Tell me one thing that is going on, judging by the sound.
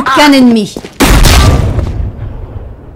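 A shotgun fires a loud blast that echoes.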